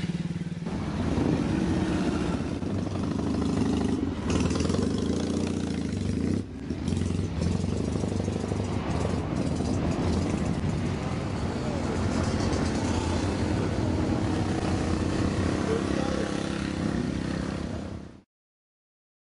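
Motorcycle engines rumble and rev close by, one after another.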